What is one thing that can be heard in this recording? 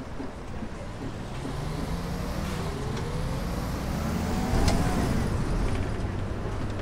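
A bus engine revs up with a rising whine as the bus pulls away.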